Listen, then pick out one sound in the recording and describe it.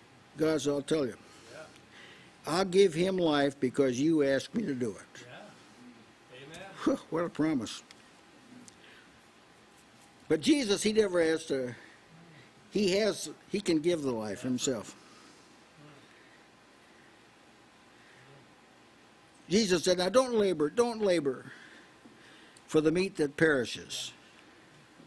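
An elderly man speaks with emphasis into a microphone, pausing between phrases.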